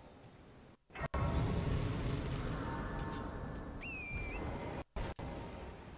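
A shimmering magical chime swells and rings out.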